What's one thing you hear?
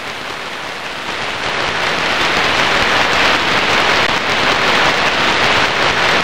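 Rain falls steadily and hisses.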